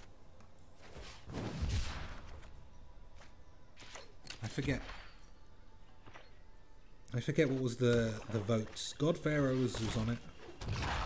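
Digital game sound effects whoosh and chime.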